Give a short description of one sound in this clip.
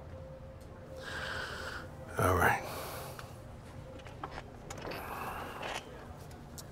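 A man speaks in a low, calm voice close by.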